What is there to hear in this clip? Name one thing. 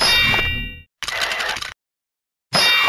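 A spell whooshes and crackles.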